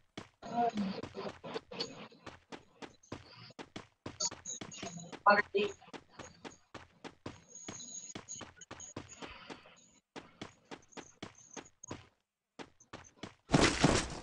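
Footsteps patter quickly on hard ground as a game character runs.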